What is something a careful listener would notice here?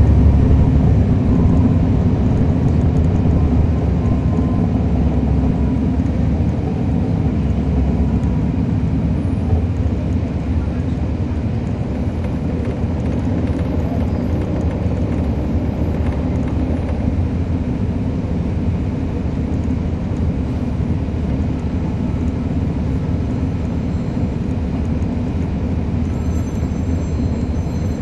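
A diesel transit bus engine drones heavily, heard from on board.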